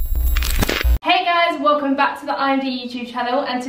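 A young woman speaks calmly and cheerfully close to a microphone.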